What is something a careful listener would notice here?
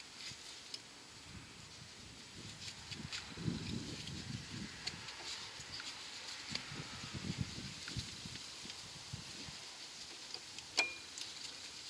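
Gloved hands scrape and tap against a metal brake disc.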